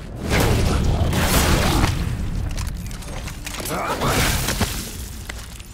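A creature shrieks and snarls loudly.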